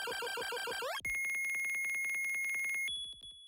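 A fast high electronic beeping counts down points.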